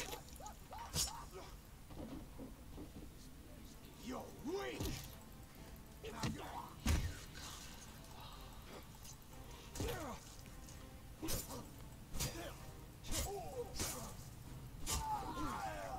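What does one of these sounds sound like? Swords clash and strike with sharp hits.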